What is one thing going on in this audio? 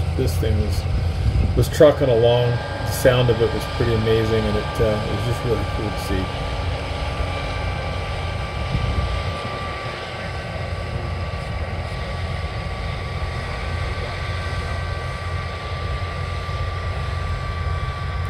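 A combine harvester engine drones steadily nearby.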